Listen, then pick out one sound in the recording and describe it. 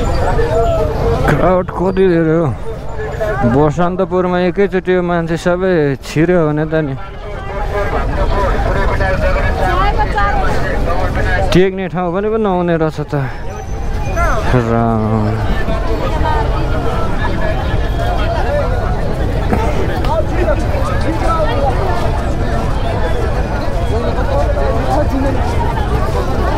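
A crowd of young men and women chatters nearby outdoors.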